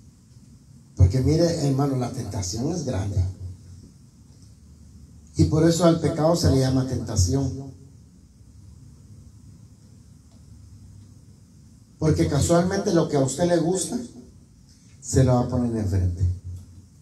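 A middle-aged man speaks with feeling through a microphone and loudspeakers, in short bursts with pauses.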